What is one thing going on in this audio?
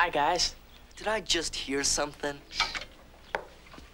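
Teenage boys talk back and forth.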